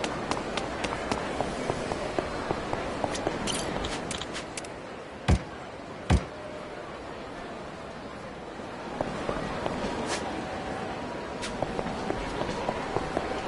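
Quick footsteps run across hard pavement.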